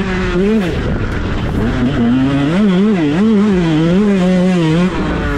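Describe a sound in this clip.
A dirt bike engine revs loudly close by, rising and falling as the throttle changes.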